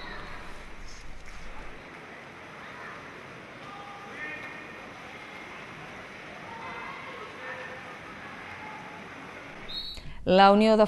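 Water splashes as swimmers thrash in a pool.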